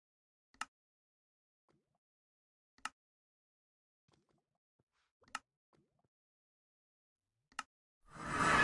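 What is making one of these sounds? Short menu clicks sound at intervals.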